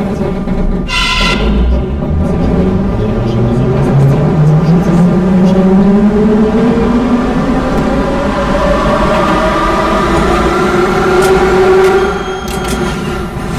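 An electric train motor whines, rising steadily in pitch as it speeds up.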